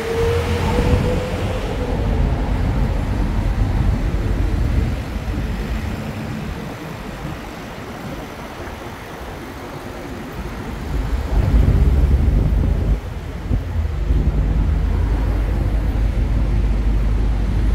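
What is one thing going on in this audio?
Cars drive past on a busy road nearby.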